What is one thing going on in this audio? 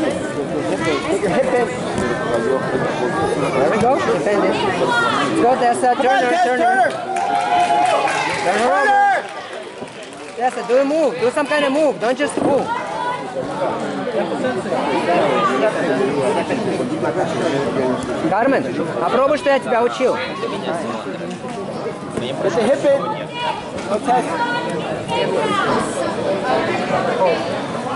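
A crowd of spectators cheers and shouts with animation in an echoing hall.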